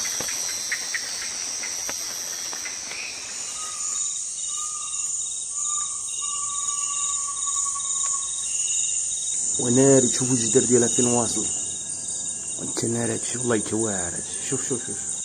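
Insects drone steadily in a forest.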